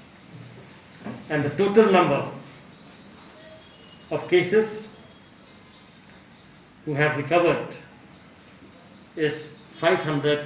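A middle-aged man speaks calmly into a microphone in short phrases with pauses.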